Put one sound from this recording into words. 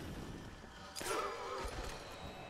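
A silenced pistol fires with a muffled pop.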